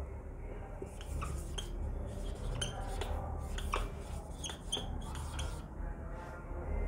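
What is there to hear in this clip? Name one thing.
A marker squeaks and taps against a whiteboard.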